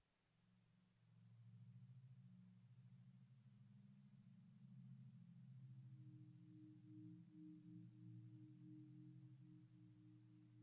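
A low, quiet droning tone hums steadily.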